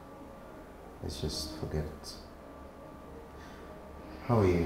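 A second man speaks in a low, calm voice.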